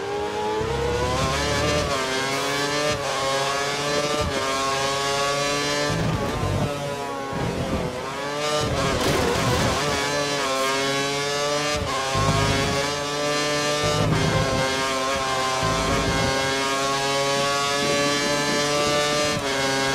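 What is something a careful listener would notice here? A Formula One car engine screams at high revs, rising and dropping through gear shifts.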